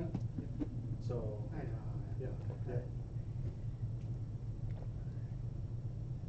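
A young man gulps water from a bottle.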